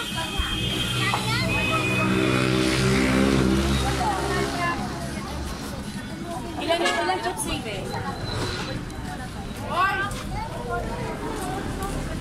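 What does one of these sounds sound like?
People talk nearby.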